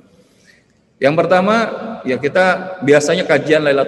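A man recites in a loud, melodic chant through an online call microphone.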